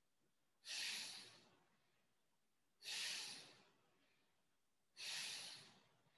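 A man breathes out forcefully in loud, rushing bursts, again and again.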